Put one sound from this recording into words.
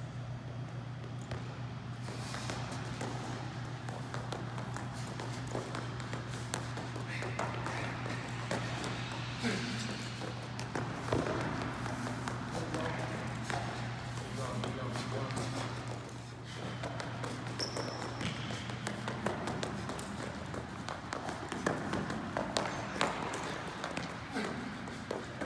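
Sneakers thud and squeak on a wooden court in a large echoing hall.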